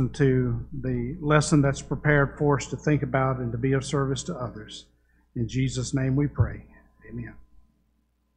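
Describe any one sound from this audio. An older man speaks calmly through a microphone in an echoing hall.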